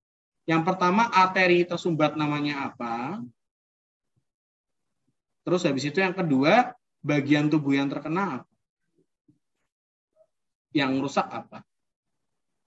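A man lectures calmly through a microphone, in short bursts with pauses.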